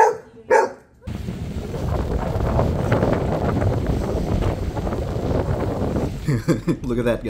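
Shallow waves wash gently over the shore.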